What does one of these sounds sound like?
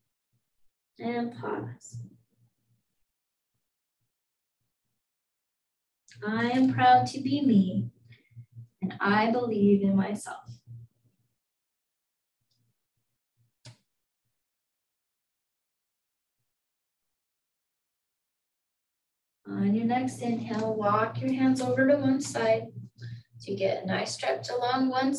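A woman speaks calmly in short phrases, heard through an online call.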